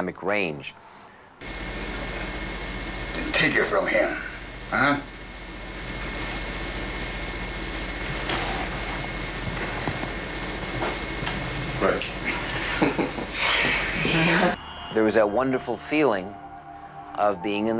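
A middle-aged man speaks calmly in an interview, close to a microphone.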